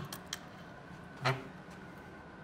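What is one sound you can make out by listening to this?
A fire alarm pull station snaps down with a sharp click.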